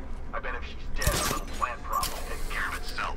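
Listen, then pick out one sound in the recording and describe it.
A grappling line shoots out with a sharp whoosh.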